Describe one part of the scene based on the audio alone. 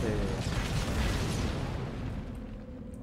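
Explosions boom and rumble as guns fire in a battle.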